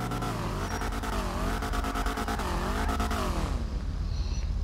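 An ambulance siren wails, rising and falling.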